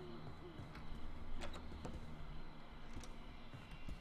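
A wooden door creaks and swings open.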